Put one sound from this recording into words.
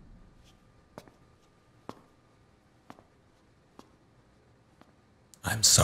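Boots step on a hard floor.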